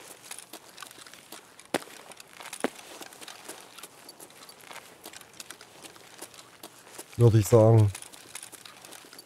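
Footsteps tread on paving stones.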